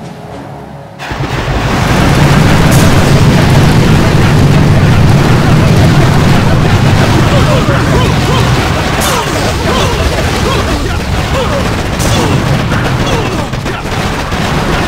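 Explosions boom repeatedly.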